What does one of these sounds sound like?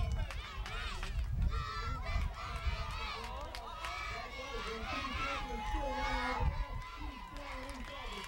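Young children shout and cheer excitedly outdoors.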